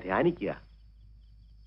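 An elderly man speaks a few words nearby.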